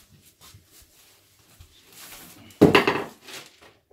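A metal hammer thuds down onto a hard floor.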